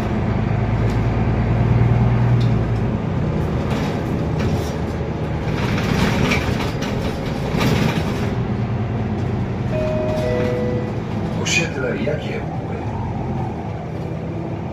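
A city bus rumbles and hums as it drives, heard from inside the passenger cabin.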